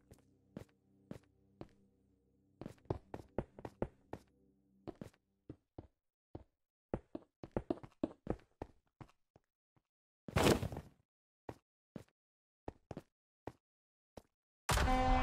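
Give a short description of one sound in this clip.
Blocks click and thud into place in quick succession.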